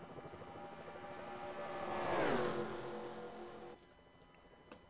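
A race car whooshes past with a falling pitch.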